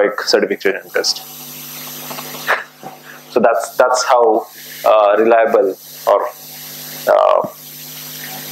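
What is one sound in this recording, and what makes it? A man speaks through a microphone in short bursts with pauses.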